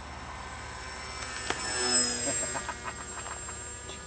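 A model glider whooshes past close by.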